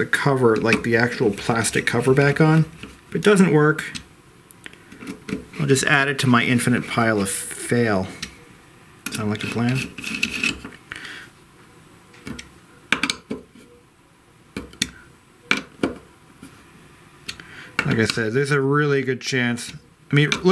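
A screwdriver clicks and scrapes against small metal screws.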